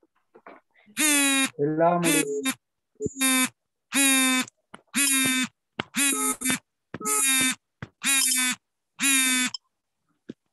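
A young child calls out in short, high bursts over an online call.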